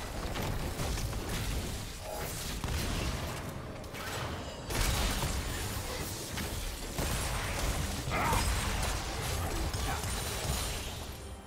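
Spell effects whoosh and crackle as game characters fight.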